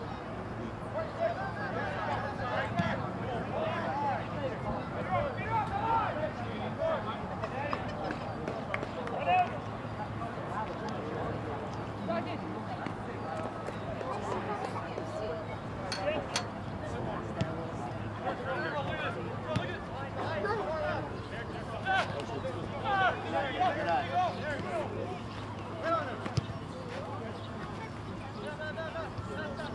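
Young men shout to one another from across an open field.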